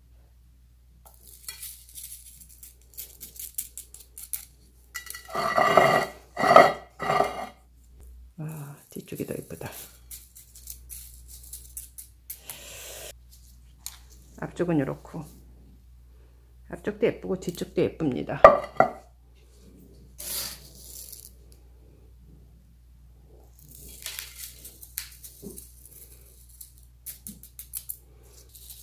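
Gravel rattles softly as a plastic spoon scoops and pours it.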